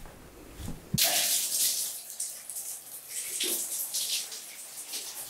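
Water patters on a tiled floor.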